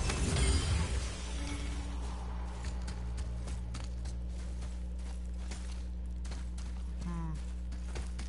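Heavy footsteps crunch on snow.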